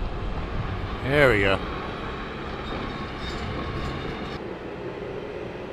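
Debris clangs into a steel dumpster.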